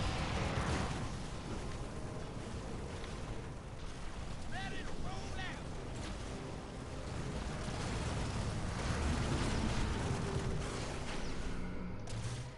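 Gunfire rattles and explosions boom in a battle.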